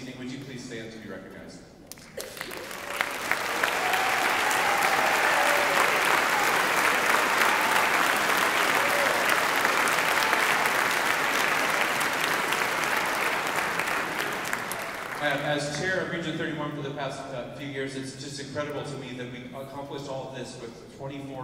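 A man speaks calmly into a microphone, heard over loudspeakers in a large hall.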